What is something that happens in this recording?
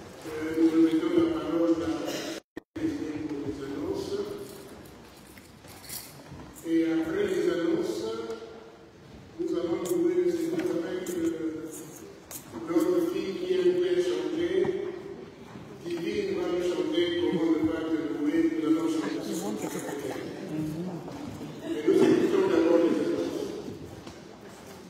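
A man sings slowly in long phrases, heard in an echoing hall.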